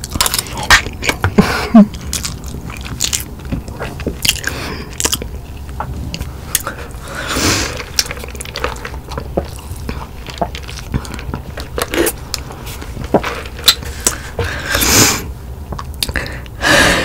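A young woman chews food close to a microphone with wet, crunchy mouth sounds.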